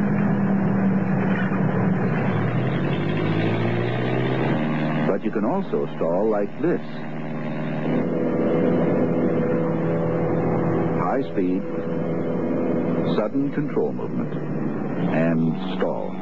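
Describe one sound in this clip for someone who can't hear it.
A small propeller plane's engine drones steadily overhead.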